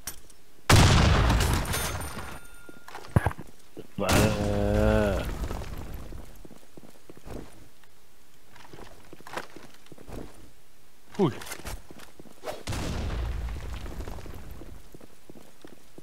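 Gunshots ring out in loud bursts.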